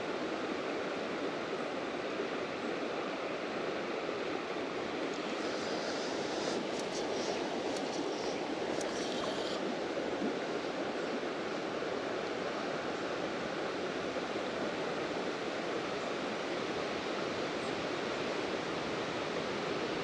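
River water flows and rushes steadily nearby.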